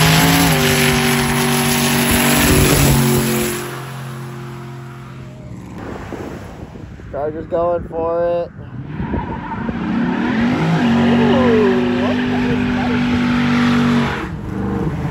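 Tyres screech and squeal as they spin on the road.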